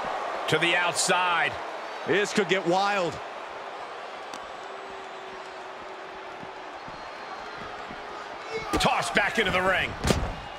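A crowd cheers steadily in a large arena.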